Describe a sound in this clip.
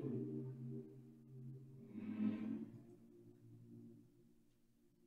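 A choir sings a final sustained chord that fades away.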